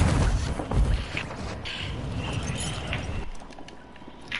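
Heavy footsteps thud across a rooftop.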